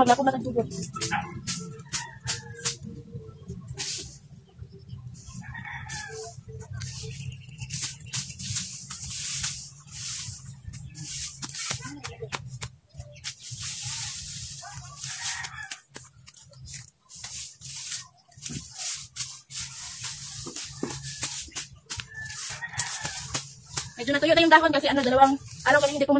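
Rakes scrape and rustle through dry grass.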